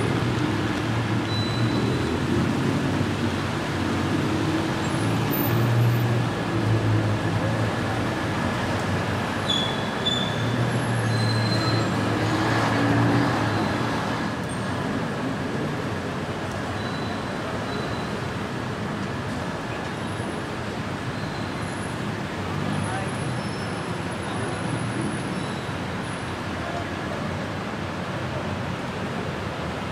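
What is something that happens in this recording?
City traffic hums steadily from the street below.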